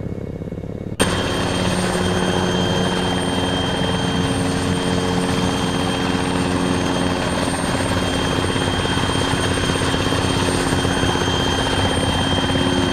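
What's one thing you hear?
A helicopter roars loudly outside as it flies.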